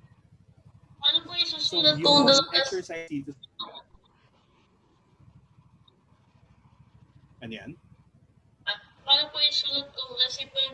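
A teenage boy speaks over an online call.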